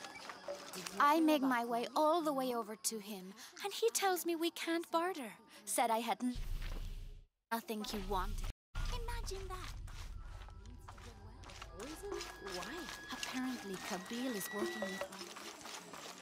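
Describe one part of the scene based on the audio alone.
A young woman talks calmly, heard close.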